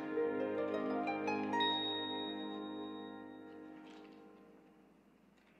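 A small music box plays a tinkling tune that fades away.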